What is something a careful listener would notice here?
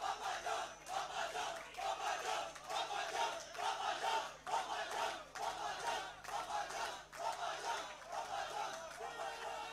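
A large crowd of men chants loudly in rhythm.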